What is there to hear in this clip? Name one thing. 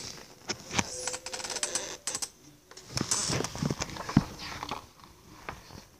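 Paper pages rustle and flip as a hand turns them.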